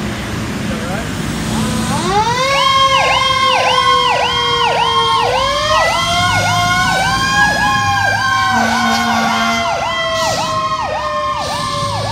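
A fire truck's siren wails loudly, rising and falling in a fast yelp.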